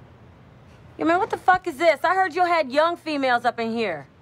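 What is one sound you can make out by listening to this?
A woman speaks firmly and clearly, close by.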